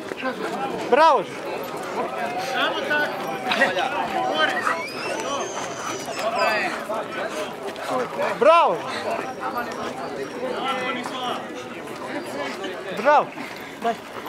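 Dogs bark sharply a few times.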